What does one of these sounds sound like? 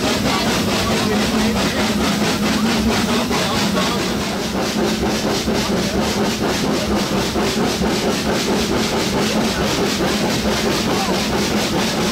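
A steam locomotive chuffs rhythmically as it pulls the train.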